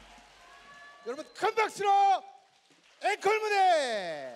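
A man speaks loudly and with animation through a microphone in a large hall.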